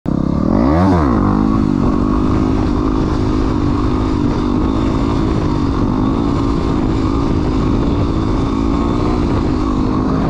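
A dirt bike engine revs hard and drones steadily close by.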